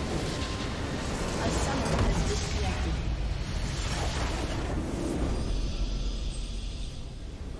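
A huge explosion booms and crackles, then rumbles away.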